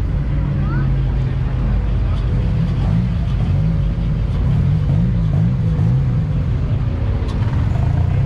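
A modified car's exhaust burbles loudly as it rolls by.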